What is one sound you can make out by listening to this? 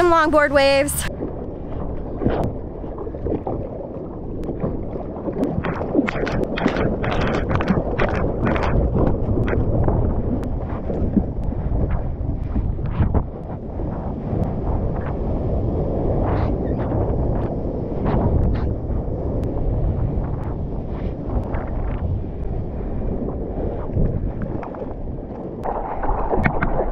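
Water rushes and splashes against a surfboard.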